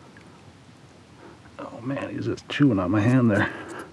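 A fish splashes in the water as it is pulled out.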